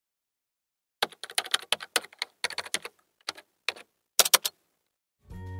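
Keyboard keys click rapidly in short bursts.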